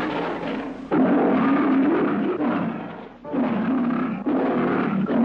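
A lion roars loudly and fiercely.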